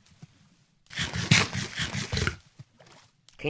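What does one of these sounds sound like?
Loud crunching bites into an apple.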